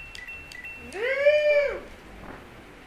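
A cartoon character jumps with a springy, rising chirp.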